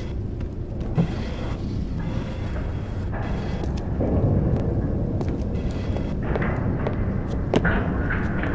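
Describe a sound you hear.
A wooden crate creaks and knocks as it is moved.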